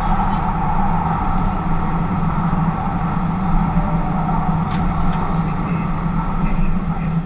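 A train rumbles steadily through a tunnel with a loud, droning roar.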